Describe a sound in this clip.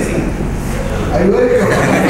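A man speaks cheerfully close by.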